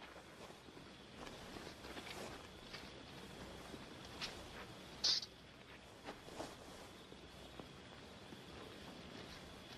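Two men scuffle and grapple on dirt ground.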